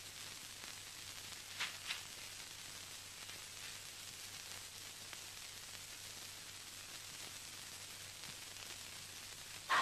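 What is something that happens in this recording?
Dry leaves rustle as a person crawls through undergrowth.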